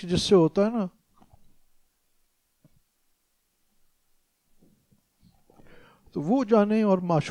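An elderly man speaks with animation through a close microphone, pausing between phrases.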